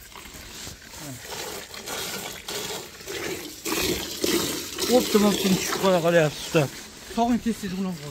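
Milk squirts in thin jets into a metal bucket.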